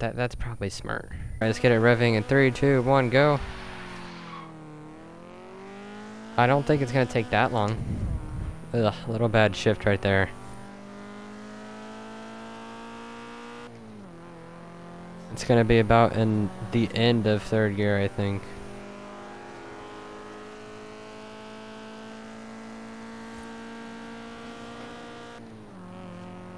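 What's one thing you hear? A car engine revs and climbs in pitch as the car speeds up.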